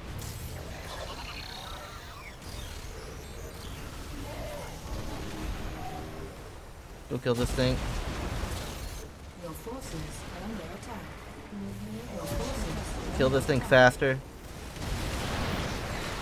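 Explosions burst in a game battle.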